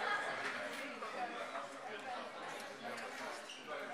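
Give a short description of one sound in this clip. A young man chews food close by.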